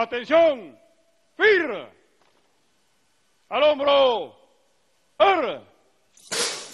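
A man shouts drawn-out military commands across an open courtyard.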